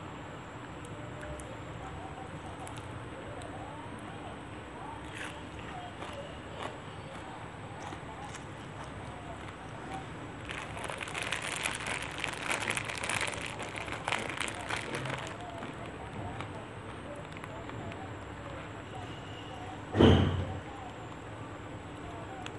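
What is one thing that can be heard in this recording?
A woman chews food with soft, wet mouth sounds close by.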